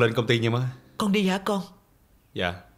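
An older woman answers nearby in a calm voice.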